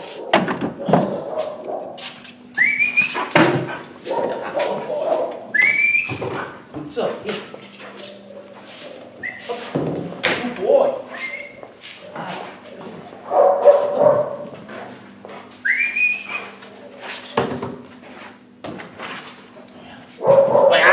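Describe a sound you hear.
A dog bumps and knocks against wooden furniture.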